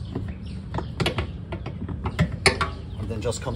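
A plastic case lid clicks and knocks as it is unlatched and lifted off.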